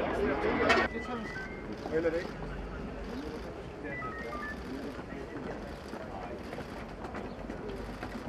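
Footsteps shuffle on pavement as a group walks.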